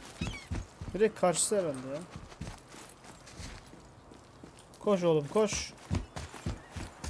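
A young man talks briefly into a close microphone.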